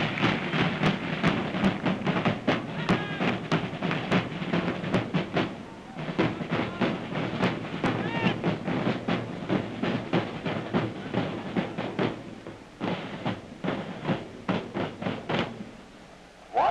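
A marching band plays brass with a steady drumbeat, heard from afar in an open stadium.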